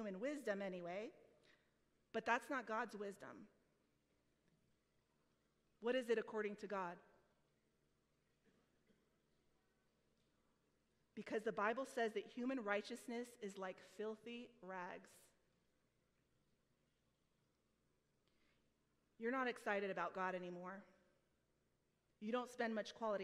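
A woman speaks calmly through a microphone, with pauses between phrases.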